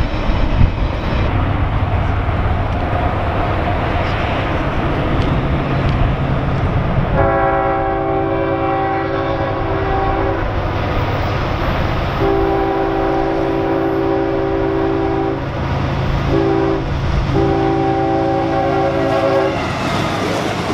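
A diesel train engine rumbles as it approaches and roars past.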